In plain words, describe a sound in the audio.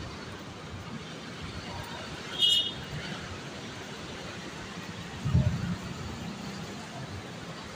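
Footsteps tap on a hard walkway.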